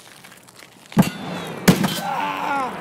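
A rifle fires sharp shots that ring out.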